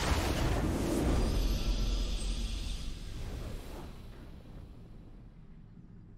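A triumphant victory fanfare swells and slowly fades.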